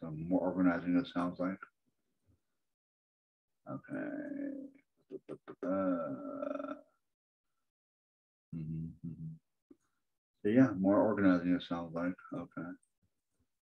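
A man speaks calmly into a microphone, as if on an online call.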